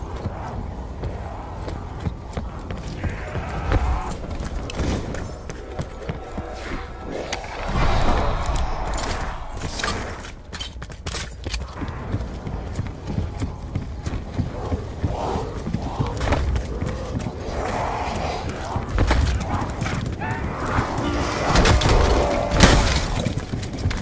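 Gunshots fire from a game weapon.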